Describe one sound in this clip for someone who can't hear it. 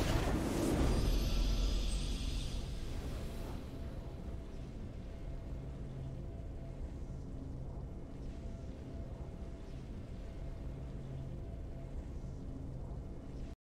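Triumphant game music swells and plays on steadily.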